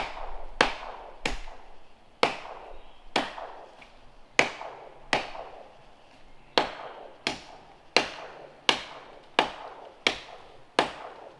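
Steady blows of a blade chop into wood, echoing across a wooded hillside.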